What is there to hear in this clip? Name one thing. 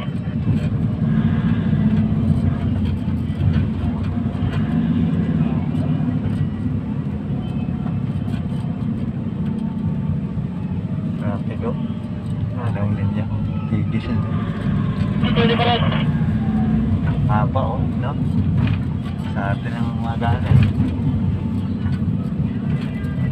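A vehicle's engine rumbles steadily, heard from inside.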